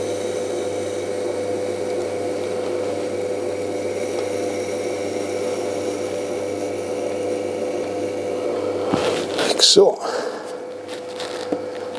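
An electric potter's wheel hums as it spins.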